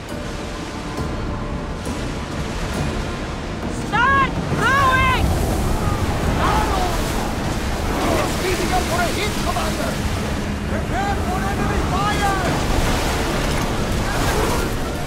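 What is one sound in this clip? Waves rush and splash against a wooden ship's hull.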